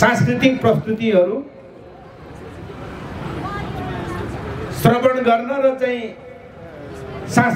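An older man speaks forcefully into a microphone over a loudspeaker, outdoors.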